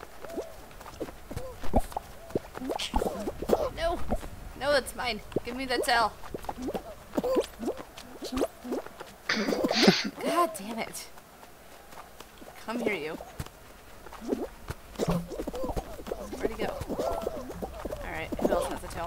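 Cartoon sound effects play as small figures scamper and tumble.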